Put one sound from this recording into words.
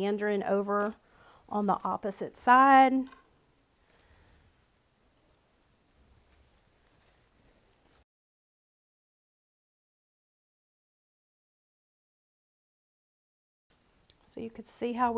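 A woman talks calmly and closely, as if explaining.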